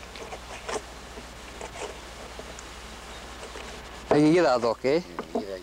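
A knife cuts and scrapes through wet fish on a wooden board.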